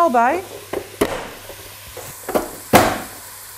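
A vegetable chopper clacks as it is pressed down.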